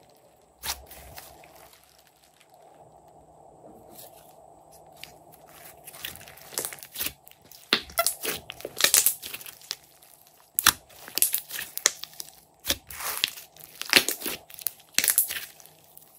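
Sticky slime squelches and pops as hands squeeze and stretch it.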